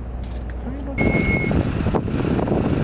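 A man steps down from a minibus onto concrete.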